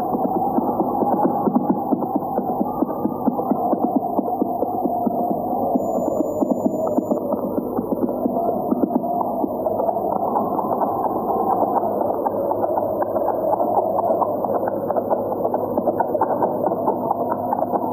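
A horse gallops over dry ground, hooves pounding.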